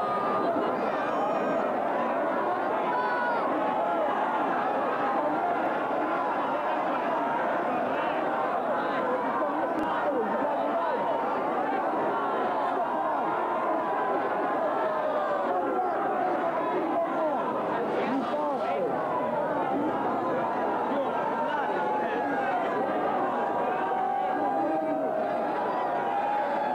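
A crowd of spectators chatters and cheers loudly nearby.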